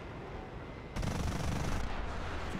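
A missile launches with a whooshing burst.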